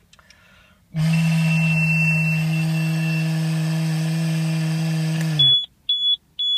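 A man blows steadily into a handheld device with a loud, steady hum.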